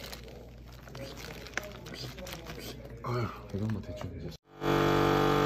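Meat squelches wetly as it is rubbed in marinade inside a plastic bag.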